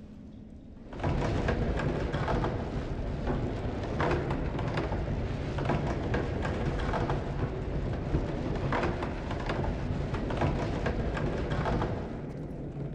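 A wooden lift rumbles and rattles loudly as it moves.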